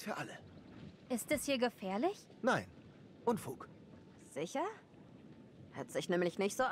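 A young woman speaks with feeling.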